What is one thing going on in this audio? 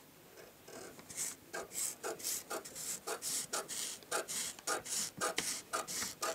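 Scissors snip steadily through paper.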